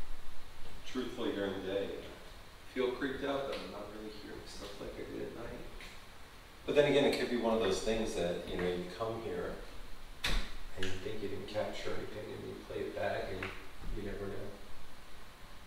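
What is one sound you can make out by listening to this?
A man talks in an echoing empty room.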